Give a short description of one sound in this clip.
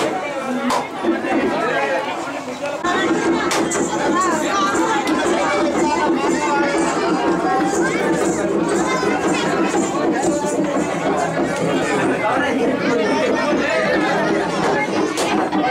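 A crowd of men chatters loudly close by.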